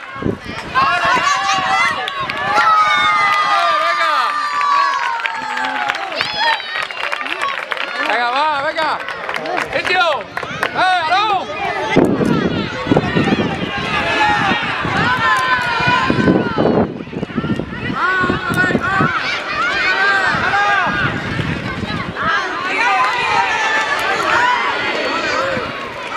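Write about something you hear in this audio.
Young children shout excitedly while playing outdoors.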